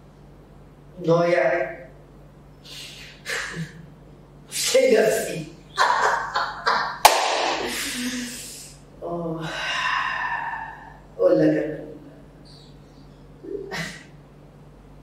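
A young man laughs loudly and breathlessly close by.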